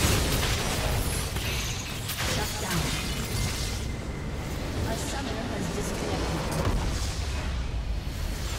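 Magic spells crackle and burst in a busy fight.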